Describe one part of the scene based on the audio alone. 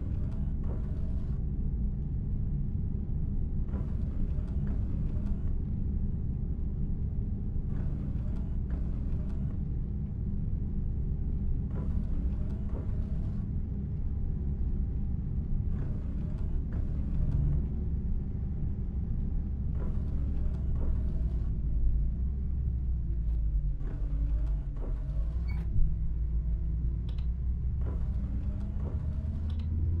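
A bus engine drones steadily at low pitch.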